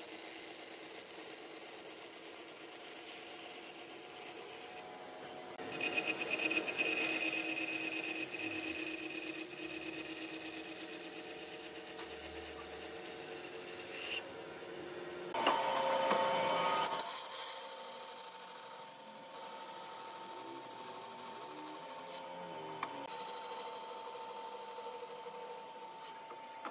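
A band saw hums steadily.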